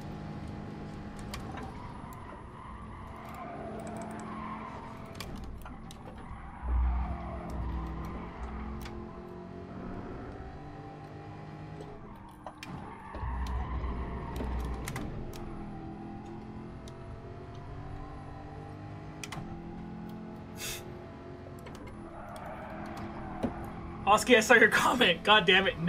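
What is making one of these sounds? A race car engine hums and rises and falls in pitch as the car changes gear.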